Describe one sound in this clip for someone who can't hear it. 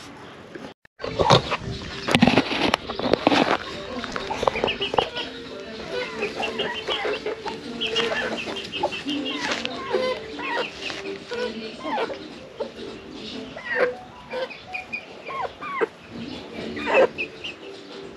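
Hens cluck and chatter nearby.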